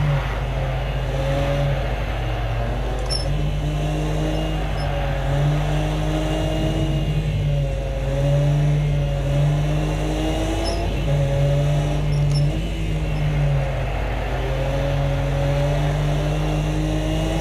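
A racing car engine hums steadily and rises and falls in pitch through the gears.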